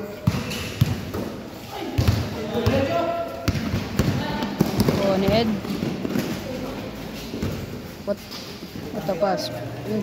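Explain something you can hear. A basketball bounces on a hard court with sharp thuds.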